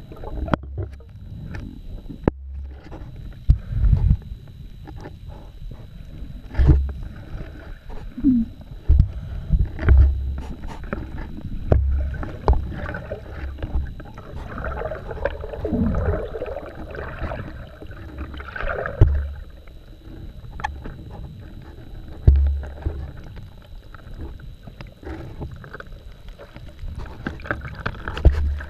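Air bubbles gurgle and rush underwater.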